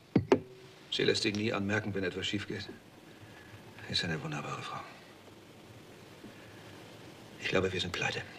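A middle-aged man speaks in a low, troubled voice nearby.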